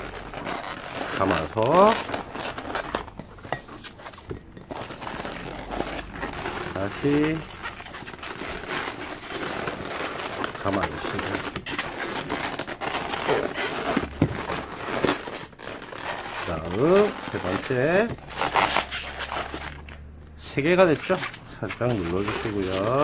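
Rubber balloons squeak sharply as hands twist them.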